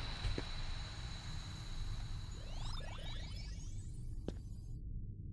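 A magic spell bursts with a bright, sparkling shimmer.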